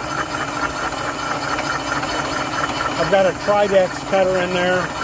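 A milling machine hums and grinds steadily as its cutter chatters through metal.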